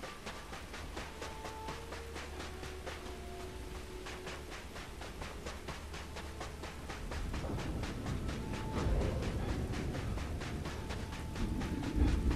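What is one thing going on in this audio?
Heavy boots crunch steadily on gravelly ground.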